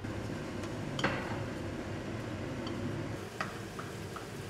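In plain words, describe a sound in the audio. A metal pan clinks on a stove.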